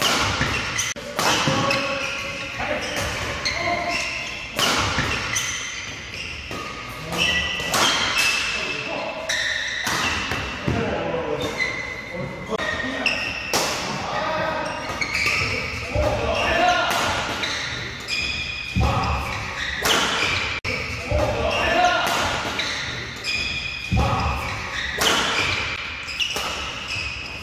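Rackets smack a shuttlecock back and forth in a rally.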